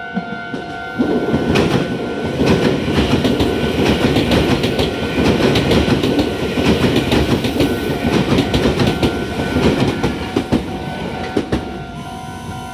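A train rumbles and clatters past on the rails.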